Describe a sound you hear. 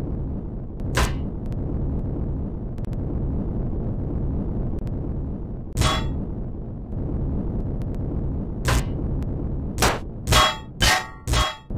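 Blocks break apart with short, sharp bursts.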